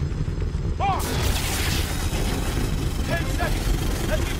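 An electric arc crackles and hisses loudly.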